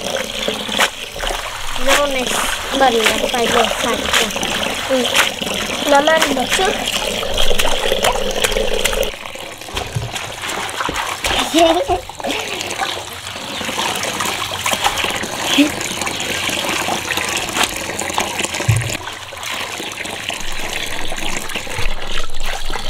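Hands swish and rustle leafy greens in water.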